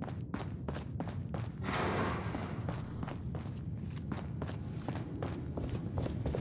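Heavy footsteps thud quickly on a hard floor.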